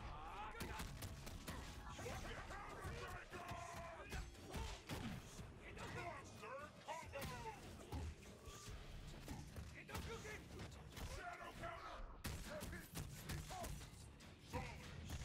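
Punches and kicks land with heavy, rapid thuds.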